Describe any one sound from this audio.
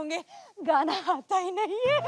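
A young woman shouts excitedly.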